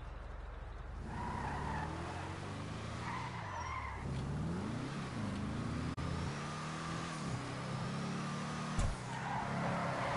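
A car engine roars and revs up and down as the car speeds away.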